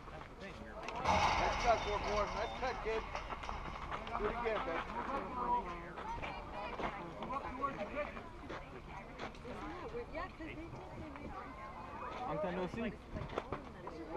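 Young children shout and chatter outdoors.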